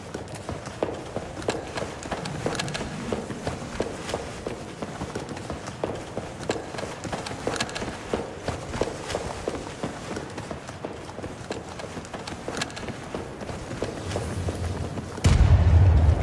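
Footsteps thud across a hard floor.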